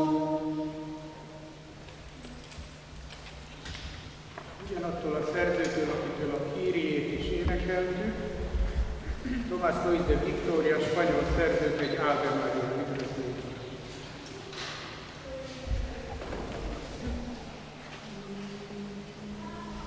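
A small mixed choir sings together in a reverberant hall.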